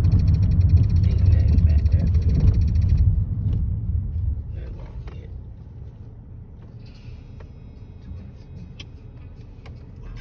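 A car's engine and tyres rumble from inside the car, growing quieter as the car slows to a stop.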